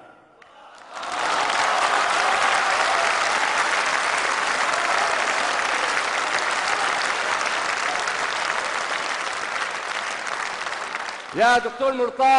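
A large crowd cheers and applauds loudly in a big hall.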